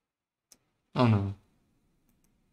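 A man says a short word close to a microphone.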